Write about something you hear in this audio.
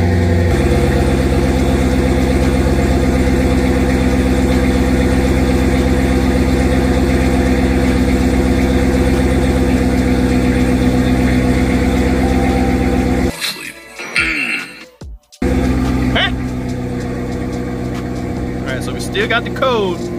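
A car engine idles with a steady, low rumble close by.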